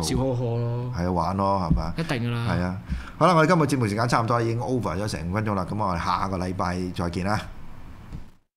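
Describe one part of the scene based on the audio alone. An older man talks with animation into a microphone, close up.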